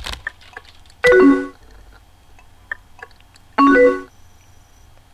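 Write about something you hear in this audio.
A short electronic message chime sounds twice.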